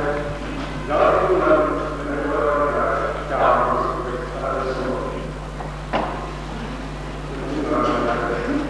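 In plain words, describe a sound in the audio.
A man speaks calmly into a microphone through a loudspeaker.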